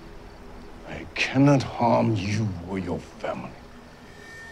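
A man speaks in a low, menacing voice close by.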